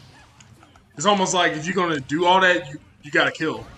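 A man speaks loudly and excitedly into a microphone.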